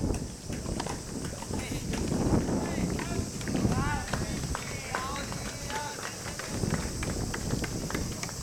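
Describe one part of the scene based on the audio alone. Tennis balls are struck with rackets outdoors.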